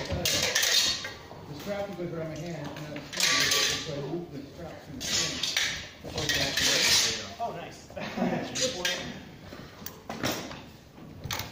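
Steel swords clash and clatter.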